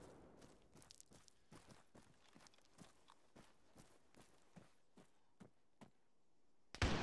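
Footsteps crunch quickly over rocky ground.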